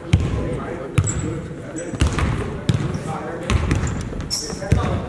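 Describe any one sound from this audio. Sneakers squeak on a gym floor.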